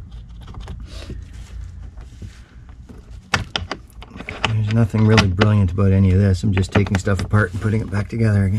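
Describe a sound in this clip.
Cable connectors click and rattle against a battery terminal.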